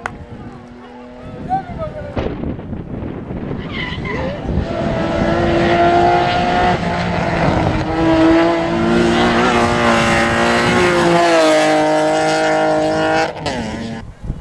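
A rally car engine roars and revs hard as the car speeds past on a winding road.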